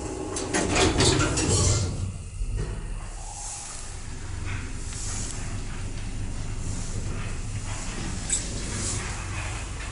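A lift hums as it moves.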